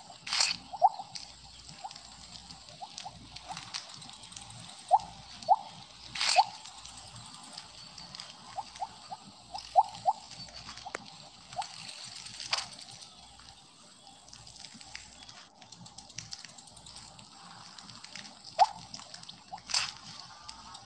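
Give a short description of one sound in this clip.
Short bright blips chime again and again as a game snake gobbles glowing pellets.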